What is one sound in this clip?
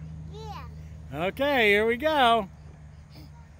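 A little girl squeals and babbles excitedly close by.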